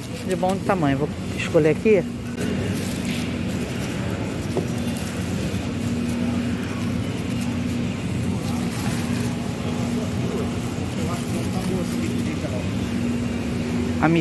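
Dry garlic skins rustle and crackle under a hand.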